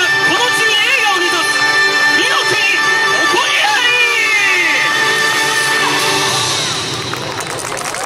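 Festive music plays loudly through loudspeakers outdoors.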